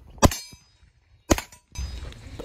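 A rifle fires sharp shots outdoors.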